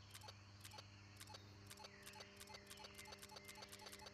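A button clicks on a radio set.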